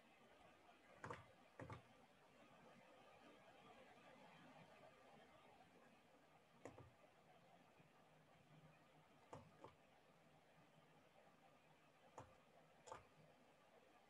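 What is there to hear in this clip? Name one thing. Game card effects play with soft whooshing clicks.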